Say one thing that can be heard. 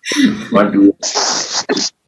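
A woman laughs over an online call.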